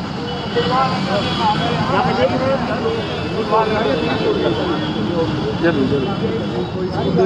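A crowd of men talks and shouts excitedly close by.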